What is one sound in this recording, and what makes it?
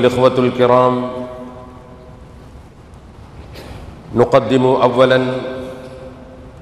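A man speaks slowly with long drawn-out words through a microphone in an echoing room.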